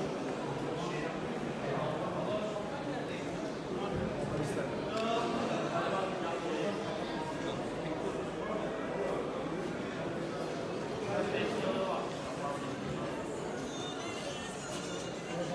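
Footsteps shuffle on a stone floor.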